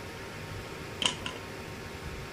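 A metal clamp clanks down onto concrete.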